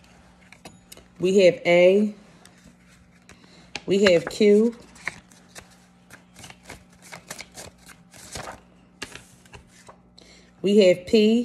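Paper rustles and flicks as it is counted.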